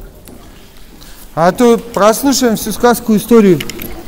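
Water trickles and flows gently in an echoing cave.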